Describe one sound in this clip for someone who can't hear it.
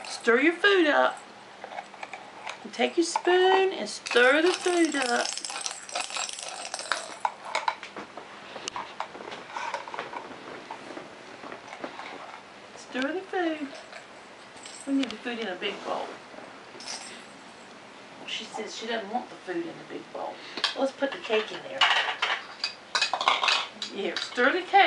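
Plastic toys clatter and knock together.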